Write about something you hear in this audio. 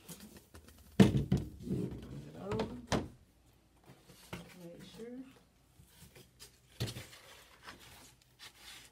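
A large cardboard board bumps and scrapes against a hard surface.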